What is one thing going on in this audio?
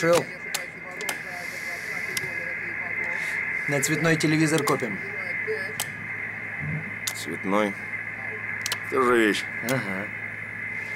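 Switches click sharply now and then.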